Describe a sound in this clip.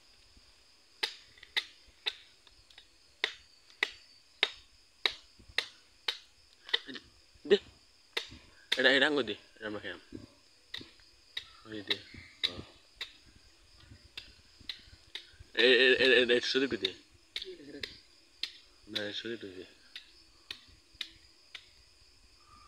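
A machete chops into a coconut with sharp, regular knocks.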